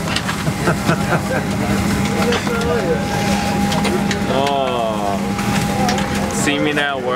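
A steady low drone of an aircraft cabin hums throughout.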